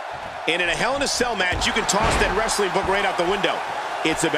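A body slams onto a wrestling mat with a thud.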